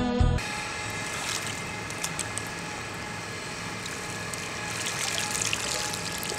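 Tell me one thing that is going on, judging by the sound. Water splashes and drips.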